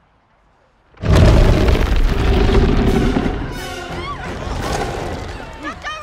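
A lion lets out a loud, rumbling roar.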